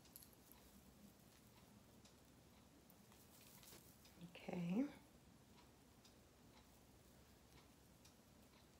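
Knitting needles click softly.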